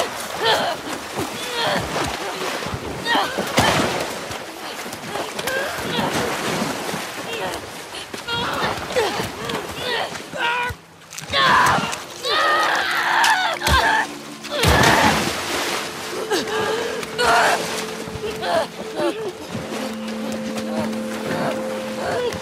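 A young woman screams and grunts with strain, close by.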